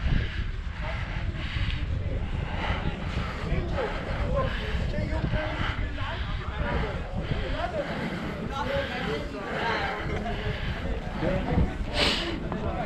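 A crowd of people chatters at a distance.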